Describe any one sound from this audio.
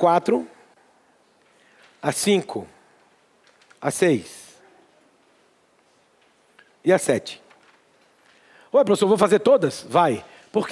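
A man speaks in short, lively bursts through a microphone.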